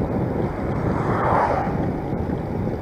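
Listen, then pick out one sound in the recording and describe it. A car passes close by on the road.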